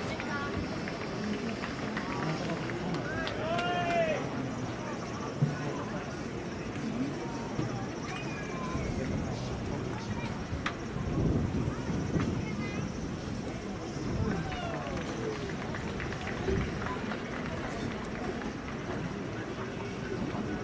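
A crowd of spectators murmurs and chatters in the open air.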